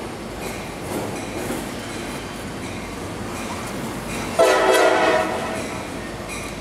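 A train rumbles out of a tunnel nearby.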